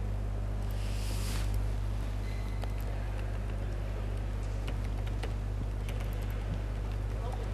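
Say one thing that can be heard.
A man talks in a large echoing hall.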